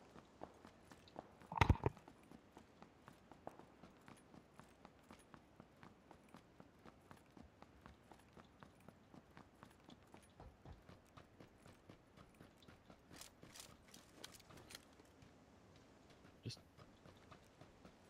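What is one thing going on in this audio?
Footsteps run quickly and steadily on a hard surface.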